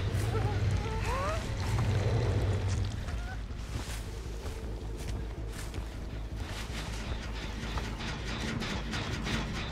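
Footsteps crunch over grass and stone.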